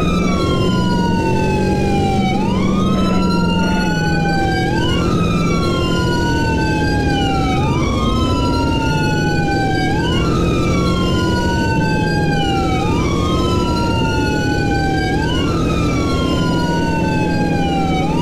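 A siren wails up and down over and over.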